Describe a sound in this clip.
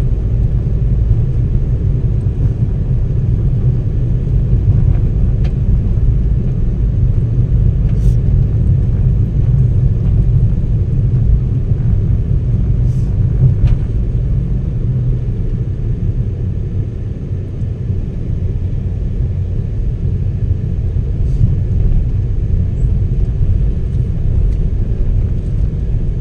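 Tyres rumble low and steady on the road.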